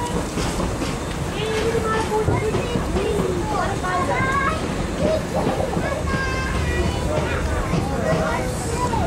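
Young children chatter and call out excitedly nearby.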